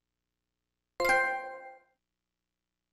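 A bright electronic notification chime rings once and quickly fades.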